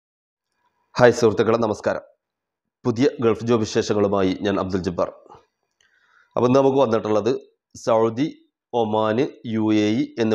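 A man speaks calmly and close to a microphone, with pauses.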